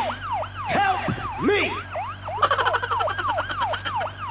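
An ambulance engine hums as it drives off.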